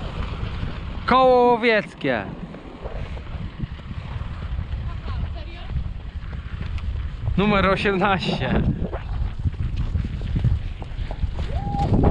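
A horse's hooves clop steadily on a dirt road.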